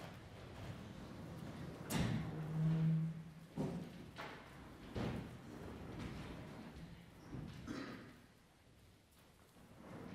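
Bare feet step and thud on a hard floor as a group walks about.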